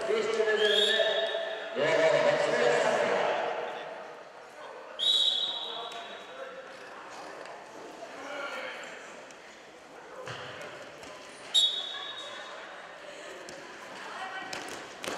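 A crowd of young spectators cheers and shouts in a large echoing hall.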